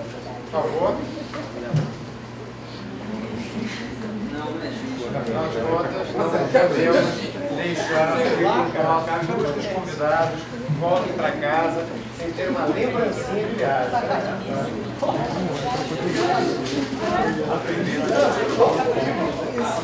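A man speaks to an audience through a microphone in an echoing hall.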